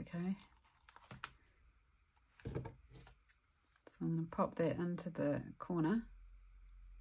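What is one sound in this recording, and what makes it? Paper rustles softly as a sticker strip is peeled and pressed down.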